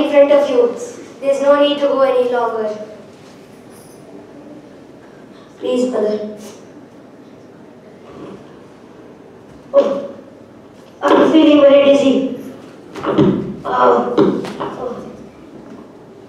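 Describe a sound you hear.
A young boy declaims loudly and dramatically in a room.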